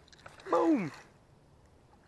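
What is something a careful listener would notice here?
A fishing reel clicks and whirs as its handle is turned.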